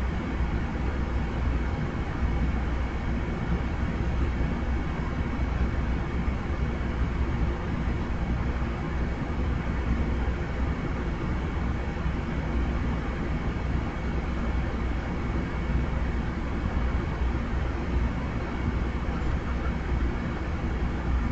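A parked train hums steadily as it idles.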